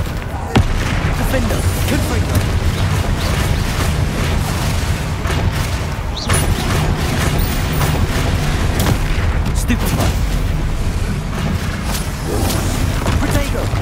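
Magic spells crackle and burst with sharp blasts.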